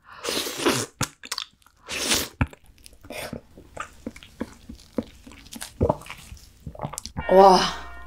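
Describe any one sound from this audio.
Crab shell crunches and cracks between teeth.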